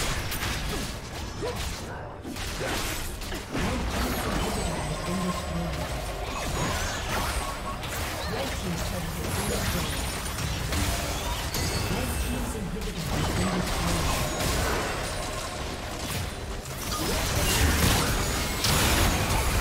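Game spells and attacks crackle and boom in a busy fight.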